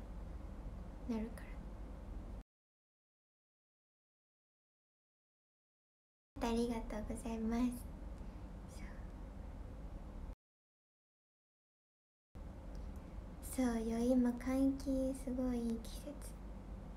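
A young woman speaks softly and closely into a microphone.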